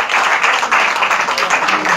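A woman laughs warmly nearby.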